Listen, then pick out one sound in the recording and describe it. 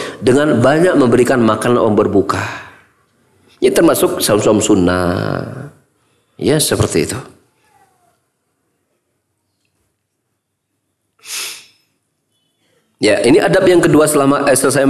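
A middle-aged man speaks calmly and firmly into a microphone, in bursts with pauses.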